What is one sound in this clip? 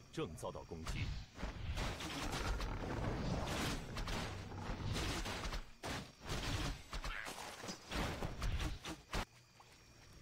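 Swords clash and spells burst in a fast battle.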